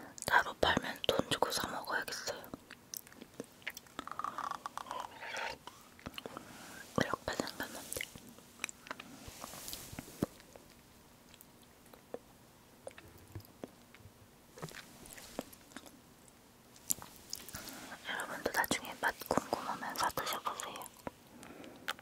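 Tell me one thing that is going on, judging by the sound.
A young woman speaks softly, close to a microphone.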